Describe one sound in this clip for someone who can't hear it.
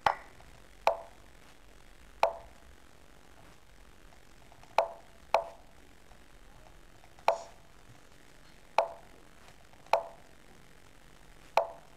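Sharp wooden clicks sound now and then as chess pieces are moved.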